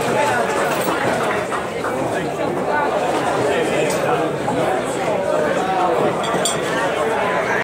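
A crowd of men and women chatters steadily.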